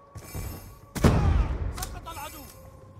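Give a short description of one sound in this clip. Gunshots crack in short, loud bursts.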